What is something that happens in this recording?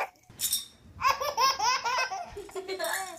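A baby laughs with delight close by.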